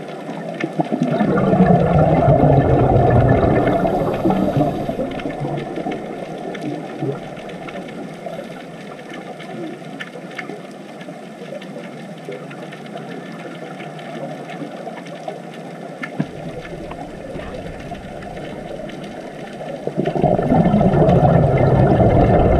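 Scuba divers' air bubbles rumble and gurgle underwater in bursts.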